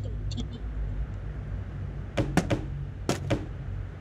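A flashlight clicks on.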